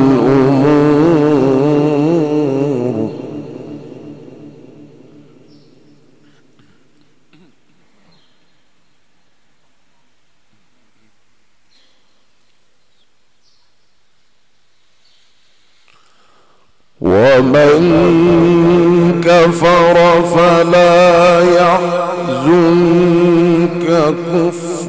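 A man chants melodiously and at length into a microphone, echoing in a large hall.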